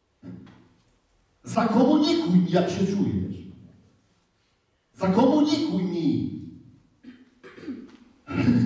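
A man speaks with animation, heard through a microphone in a large echoing hall.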